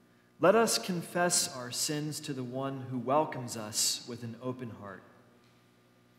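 A man reads aloud clearly through a microphone in a large echoing room.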